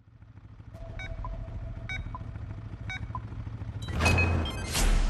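Countdown beeps sound at even intervals.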